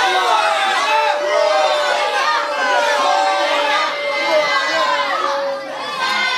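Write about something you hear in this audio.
An audience of men and women chatters and calls out.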